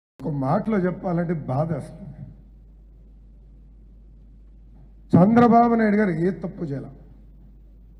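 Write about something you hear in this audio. A man speaks forcefully into a microphone, pausing between phrases.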